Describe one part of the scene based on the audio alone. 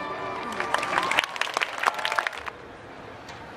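An orchestra plays loudly.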